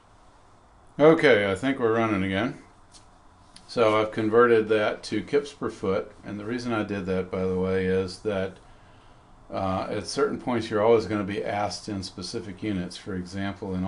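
An elderly man speaks calmly and explains, close to a microphone.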